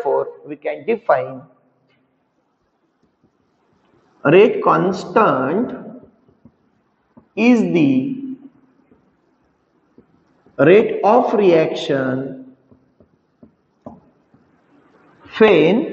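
A man speaks calmly and clearly, pausing often, like a teacher explaining.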